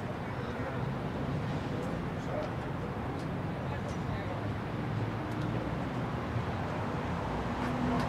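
A crowd of people talk and call out in the distance.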